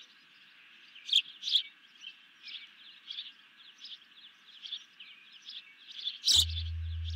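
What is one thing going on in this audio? An osprey calls with repeated high, piping chirps.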